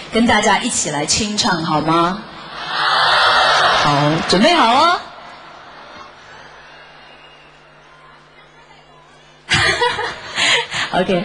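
A young woman speaks with animation into a microphone, heard through loudspeakers.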